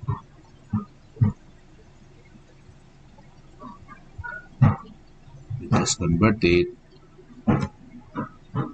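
A man speaks calmly and haltingly into a microphone, close by.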